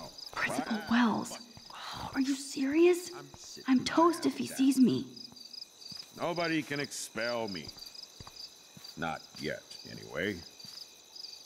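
A young woman speaks to herself in a low, annoyed voice, close by.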